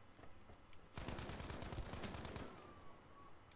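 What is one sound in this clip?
Rapid gunfire rattles in a loud burst.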